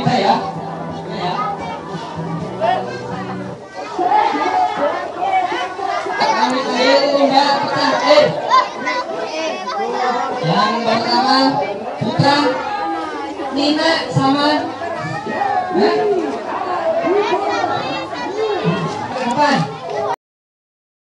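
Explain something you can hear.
A crowd of children and adults chatter and shout loudly close by in a room.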